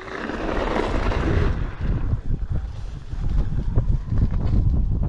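Wind buffets the microphone of a moving rider.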